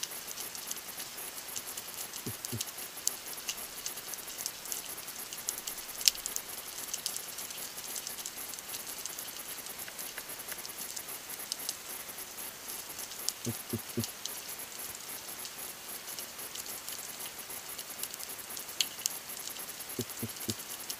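A steady underwater crackle and hiss surrounds the listener.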